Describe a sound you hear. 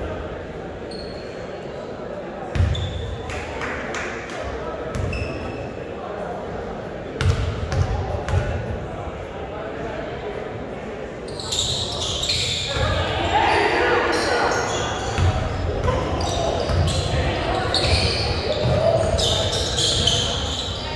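A crowd of spectators murmurs and cheers.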